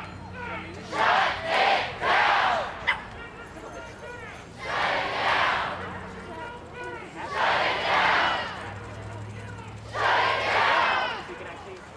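A large crowd outdoors chants loudly in bursts.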